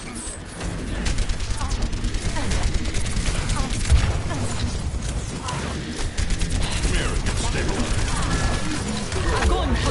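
Rapid gunfire crackles in quick bursts.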